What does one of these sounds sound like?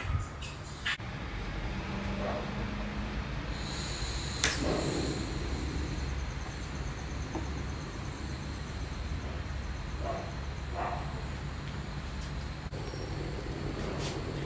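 A small gas burner hisses steadily.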